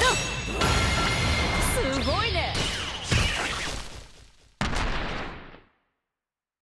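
Game battle effects crash and whoosh with bursts of magic.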